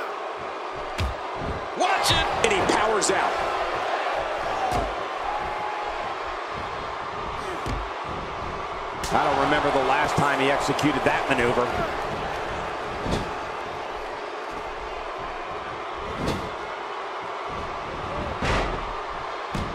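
Heavy bodies thud onto a wrestling ring mat.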